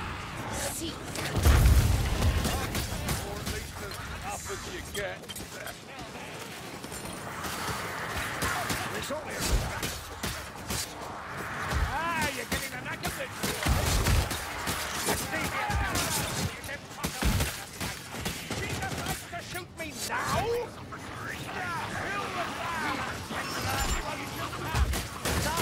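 Weapons clash and thud against enemies over and over.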